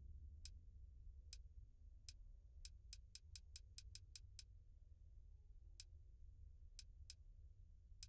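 Soft, high electronic clicks tick one after another as a menu scrolls, quickly in a burst and then sparsely.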